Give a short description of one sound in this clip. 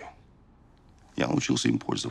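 An older man answers in a low, steady voice.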